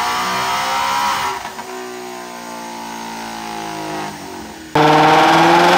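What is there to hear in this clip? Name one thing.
A car engine idles with a deep rumble.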